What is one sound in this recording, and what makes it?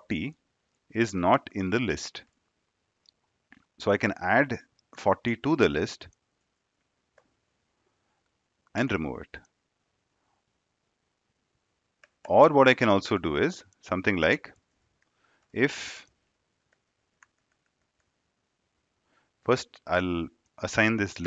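A young man speaks calmly into a close headset microphone, in short phrases with pauses.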